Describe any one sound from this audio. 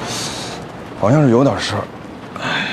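A young man speaks nearby in a strained, pained voice.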